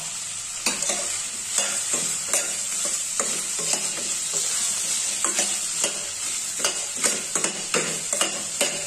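Vegetables sizzle in hot oil.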